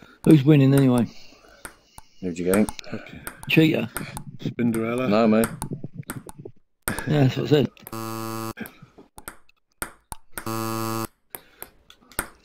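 A ping-pong ball clicks sharply back and forth against paddles and a table.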